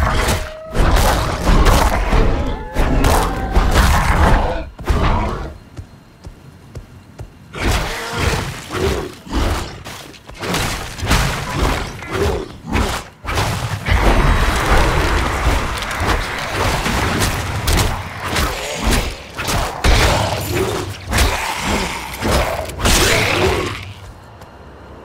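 Blows and slashes strike repeatedly in a fight.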